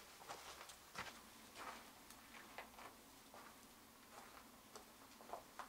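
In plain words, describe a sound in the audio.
Footsteps crunch on loose gravel.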